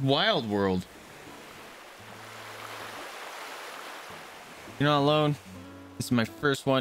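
Waves wash softly onto a shore.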